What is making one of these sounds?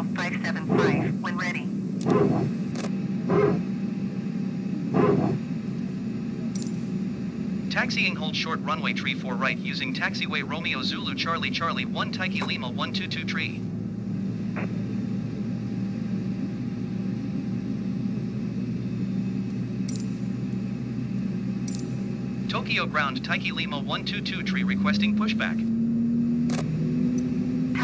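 A steady low hum of aircraft systems drones in a cockpit.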